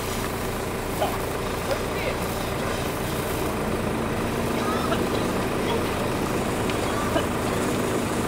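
Firework sparks crackle and pop now and then.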